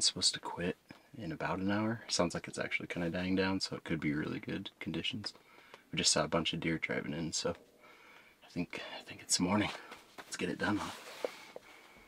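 A man talks quietly up close.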